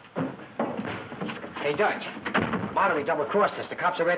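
A young man speaks excitedly.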